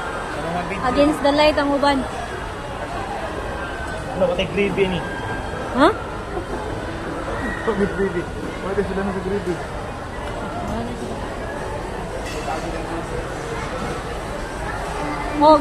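Indistinct chatter of people echoes in a large busy hall.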